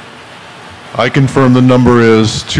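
An older man speaks calmly through a microphone over loudspeakers.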